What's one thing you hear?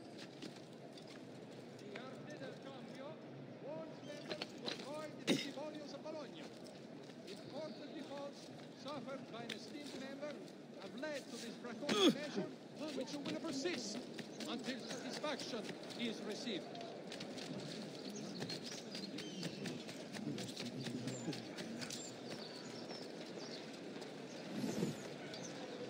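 Footsteps patter quickly over tiles and stone.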